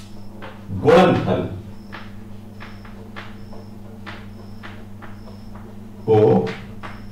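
A man speaks briefly in short bursts, close by.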